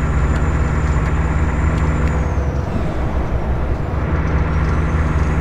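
A truck engine drones steadily with a low rumble.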